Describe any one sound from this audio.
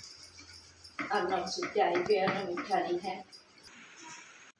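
A woman talks nearby.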